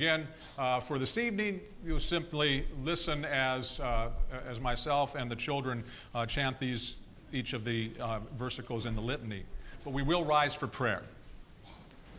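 A man speaks calmly over a microphone in a large echoing hall.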